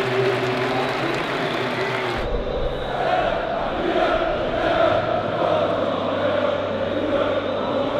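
A large crowd cheers and sings in a big open stadium.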